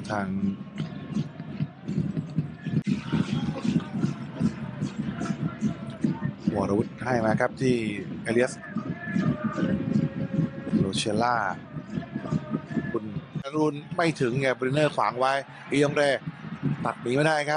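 A large crowd chants and cheers in an open stadium.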